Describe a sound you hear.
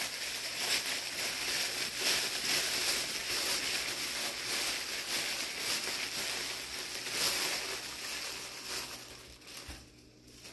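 Tissue paper crinkles as it is unwrapped.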